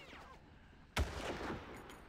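A rifle shot cracks loudly.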